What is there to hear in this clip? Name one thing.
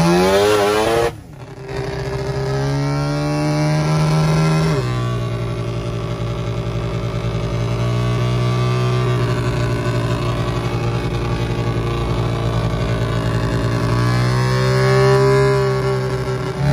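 A vehicle engine drones steadily, its pitch shifting as gears change.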